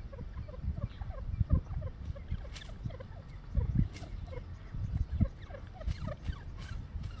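Dry straw rustles as a bird shifts in its nest.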